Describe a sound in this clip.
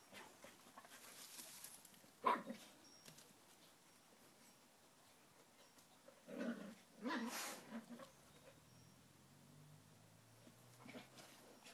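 A dog rolls and rustles on grass.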